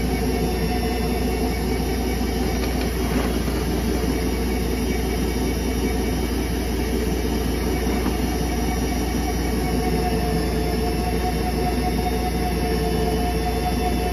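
Water swirls and gurgles in a drain basin.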